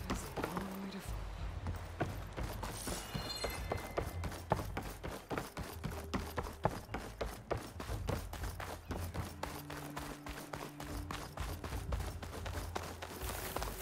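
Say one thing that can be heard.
Quick footsteps thud across a wooden bridge and onto dirt.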